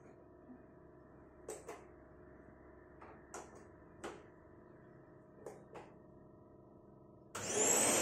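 A plug clicks into a power strip.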